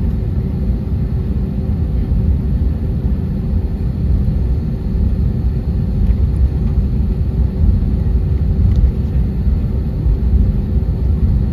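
The jet engines of an airliner taxiing rumble low, heard from inside the cabin.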